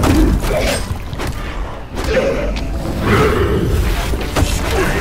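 Game combat sounds clash and thud.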